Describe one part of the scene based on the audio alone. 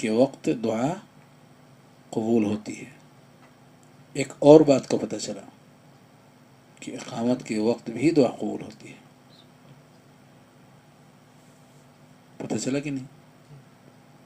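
An older man speaks calmly in short phrases with pauses, close to a microphone.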